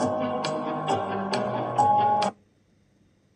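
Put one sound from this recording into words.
Cheerful game music plays.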